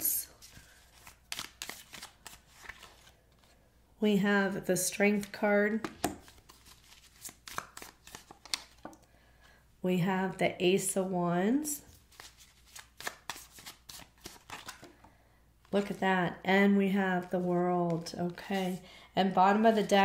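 Playing cards riffle and slap softly as they are shuffled.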